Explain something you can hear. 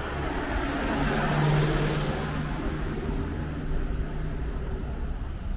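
A car drives past close by and fades away.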